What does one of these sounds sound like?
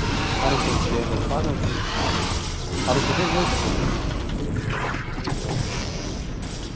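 Game gunfire and explosions crackle in a busy battle.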